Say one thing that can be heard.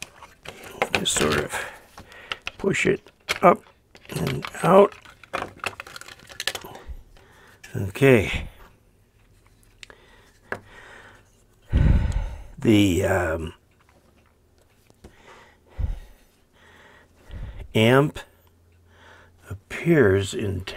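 Small metal parts clink and rattle as they are handled.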